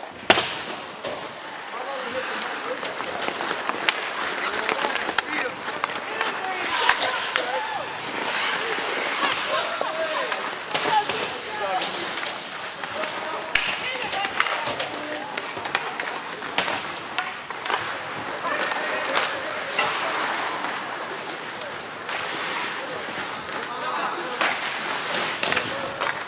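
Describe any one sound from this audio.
Hockey sticks click and clack against the puck.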